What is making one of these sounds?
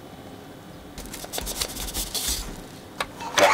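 Sugar pours and rustles into a pot.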